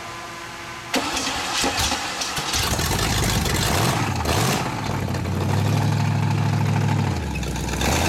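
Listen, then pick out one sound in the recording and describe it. A car engine revs hard and roars loudly.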